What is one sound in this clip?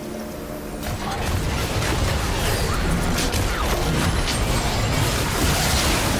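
Magic blasts and spell effects crackle and burst in a busy fight.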